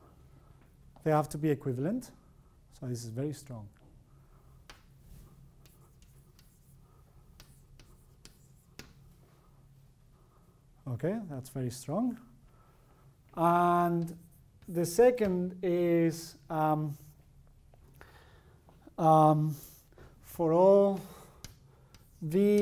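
A man speaks calmly in short bursts with pauses.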